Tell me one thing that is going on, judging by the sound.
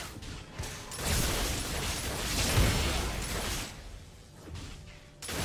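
Blows clash and thud in a fight.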